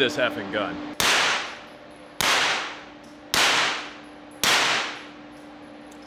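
A suppressed gun fires four sharp shots that echo in a hard room.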